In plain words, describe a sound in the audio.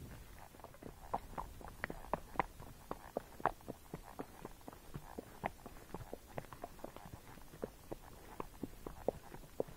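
A horse's hooves crunch steadily on a dry dirt trail.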